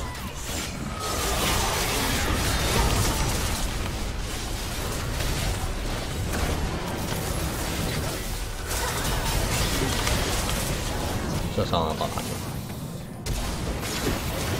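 Game sound effects clash and whoosh in quick bursts.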